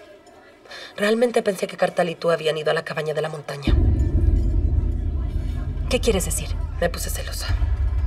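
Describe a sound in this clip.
A young woman speaks tensely and quietly, close by.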